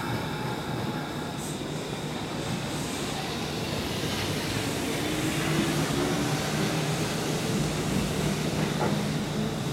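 An electric train pulls away with a rising motor whine and a low rumble.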